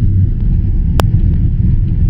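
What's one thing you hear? Airplane wheels touch down on the runway with a sharp thump.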